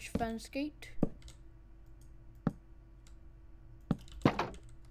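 Blocks are placed with short, sharp clicks.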